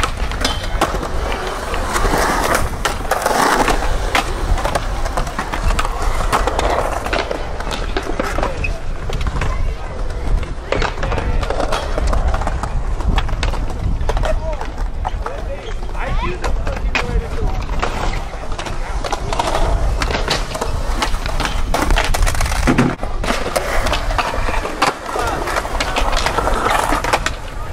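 Skateboard wheels roll and rumble over concrete.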